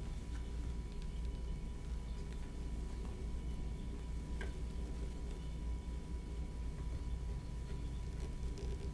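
A swivel knife scratches faintly as it cuts into leather.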